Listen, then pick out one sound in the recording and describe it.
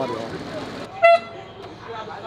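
A plastic horn blares briefly in a crowd.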